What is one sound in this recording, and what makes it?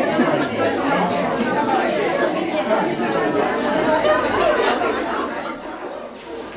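A crowd of adults chatter all around in a busy room.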